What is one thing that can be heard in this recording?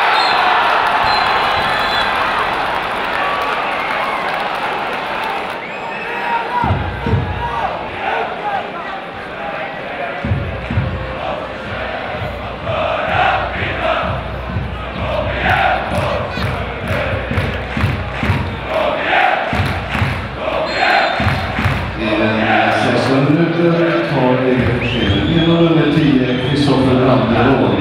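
A large stadium crowd roars and sings chants.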